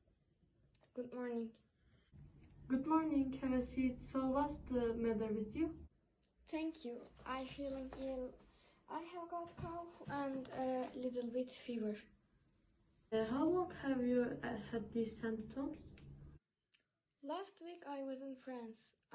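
Another young girl answers calmly through a face mask, close by.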